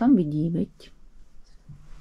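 Fabric rustles as a hand lifts a bed sheet.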